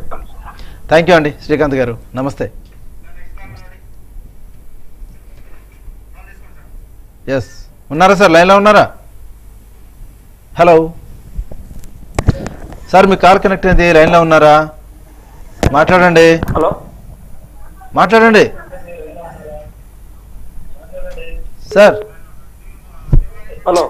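A middle-aged man speaks calmly into a microphone, in bursts with pauses.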